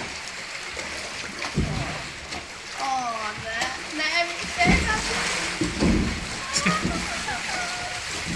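Water rushes and splashes through an echoing tube.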